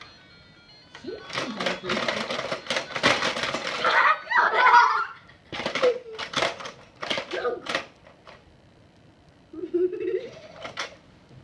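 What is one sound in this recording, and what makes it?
Plastic game pieces clatter and click on a toy board.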